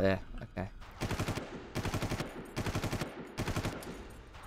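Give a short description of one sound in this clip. Rapid bursts of automatic gunfire ring out.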